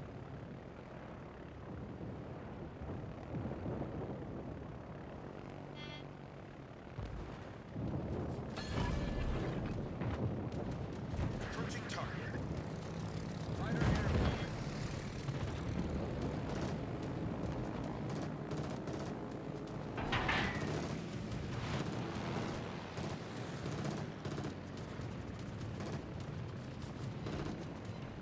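Aircraft engines drone steadily.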